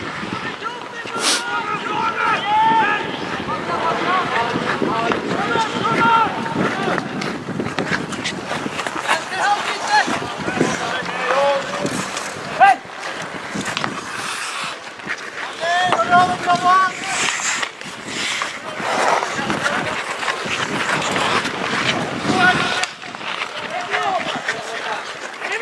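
Skates scrape and hiss across ice throughout.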